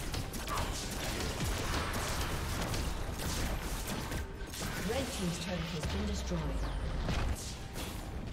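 Magic spell effects whoosh and crackle during a fight.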